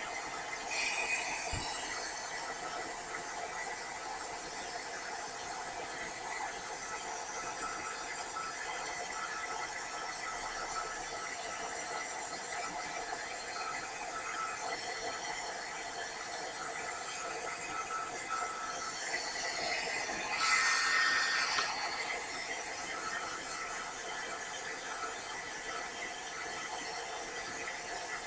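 A heat gun whirs and blows hot air.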